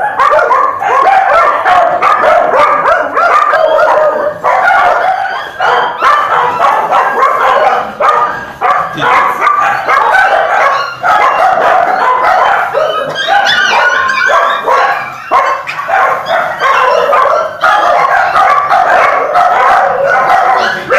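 Several puppies whine and yelp constantly, close by.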